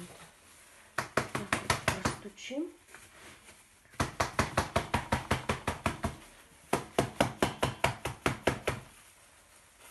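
Hands pat and press down soil in a pot.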